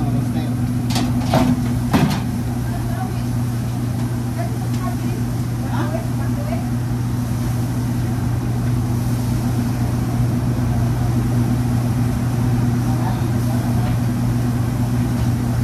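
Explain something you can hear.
Metal utensils clatter against pans.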